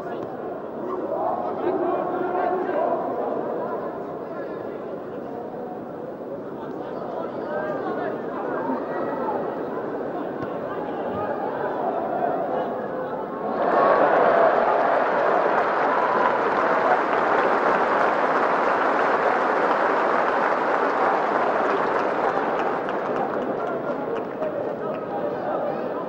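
A large crowd murmurs and cheers in a stadium, swelling suddenly to a loud roar.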